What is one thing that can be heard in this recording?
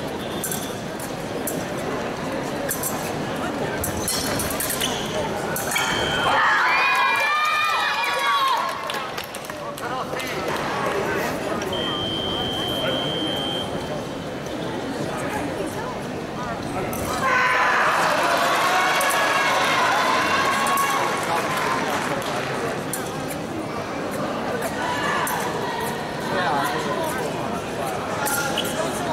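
Steel blades clash and scrape.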